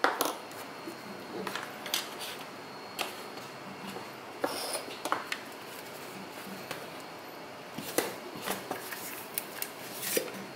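Small plastic parts click and tap against a hard surface.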